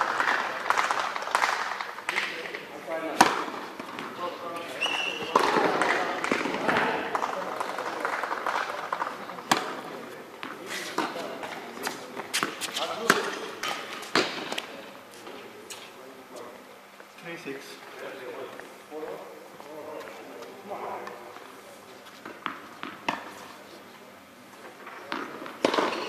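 Tennis balls are struck with rackets, each hit giving a sharp pop in a large echoing hall.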